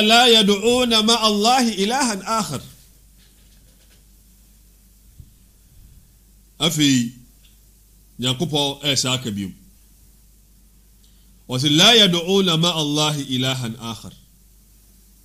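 A man speaks with animation into a close microphone, pausing between phrases.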